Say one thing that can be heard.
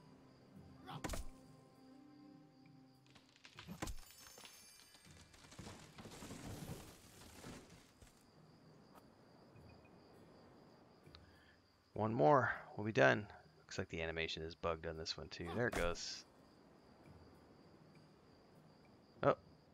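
A blade chops at a small tree with short swishing blows.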